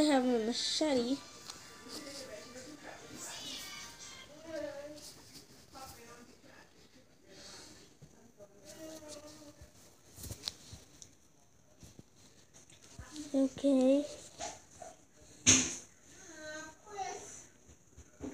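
Fabric rustles softly as a soft toy is moved over bedding.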